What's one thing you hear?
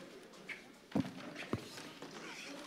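A body thuds onto the floor.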